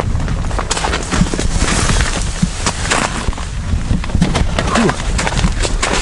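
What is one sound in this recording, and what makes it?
Boots crunch on icy snow nearby.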